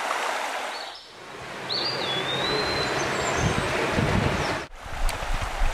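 Water rushes noisily over rocks in rapids.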